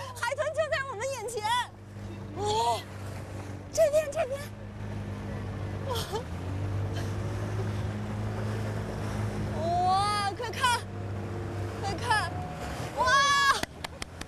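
Water washes against a boat's hull.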